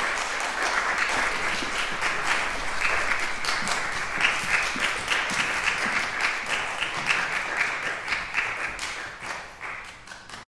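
An audience applauds steadily in a large echoing hall, fading toward the end.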